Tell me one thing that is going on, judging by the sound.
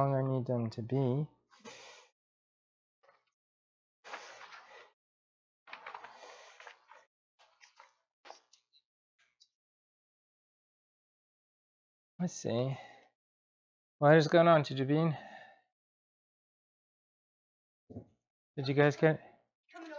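A man speaks calmly nearby, in short bursts.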